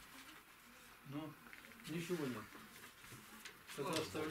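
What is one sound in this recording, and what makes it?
An elderly man speaks calmly nearby, in a low voice.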